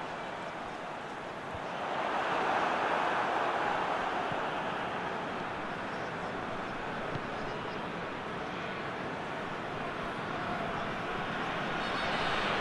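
A large stadium crowd roars steadily, swelling for a few seconds and then settling.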